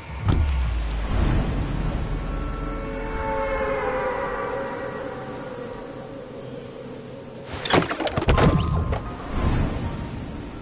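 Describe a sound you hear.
Explosions boom in loud bursts.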